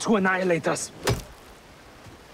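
An axe strikes a wooden stump with a heavy thud.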